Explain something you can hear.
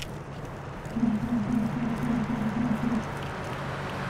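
Plastic toy bricks clatter and snap together in a rhythmic run.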